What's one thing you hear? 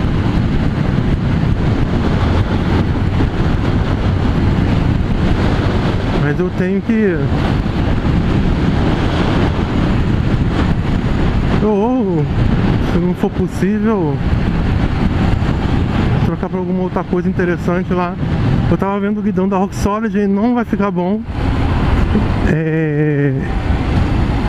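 A motorcycle engine hums steadily and revs up and down through the gears.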